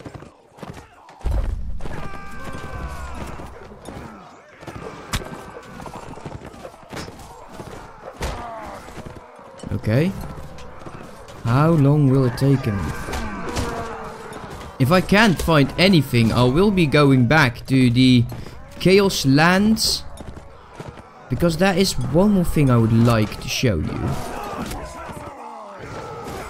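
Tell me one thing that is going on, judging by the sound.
Metal weapons clash and clang in a battle.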